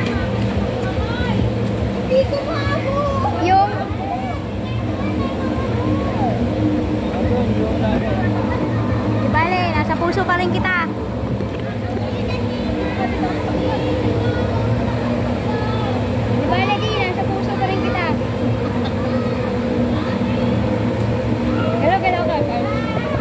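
Water splashes and laps steadily outdoors.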